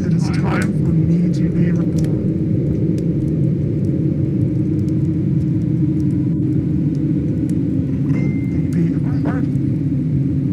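A young woman talks softly into a microphone.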